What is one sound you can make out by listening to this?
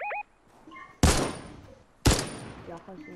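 A gun fires two loud shots.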